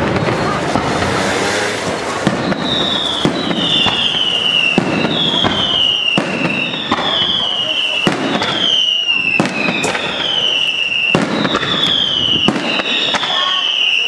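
Fireworks burst overhead with sharp bangs.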